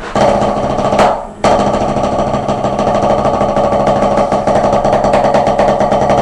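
A drum is beaten in a fast, steady roll, with a brief pause.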